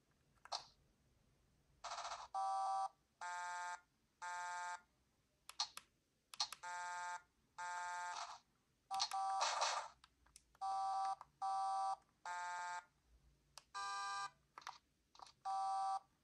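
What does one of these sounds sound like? Plastic buttons click softly under thumbs.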